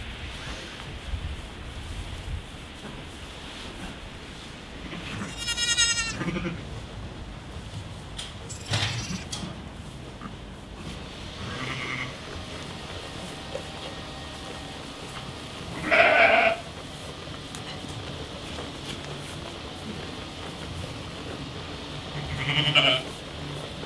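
Sheep munch on hay.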